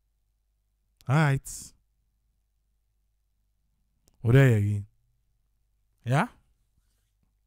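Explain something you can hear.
An elderly man speaks through a microphone in short bursts.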